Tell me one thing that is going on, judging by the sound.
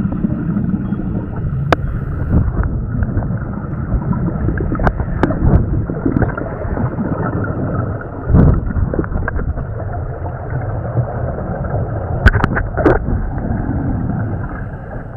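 A scuba diver's exhaled bubbles gurgle and rush out underwater.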